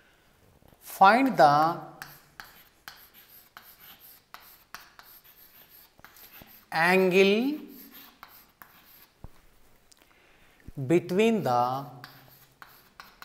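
A man speaks in short, drawn-out phrases, as if reading aloud while he writes.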